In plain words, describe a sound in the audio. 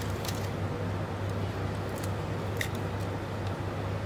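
A knife taps on a plate while chopping.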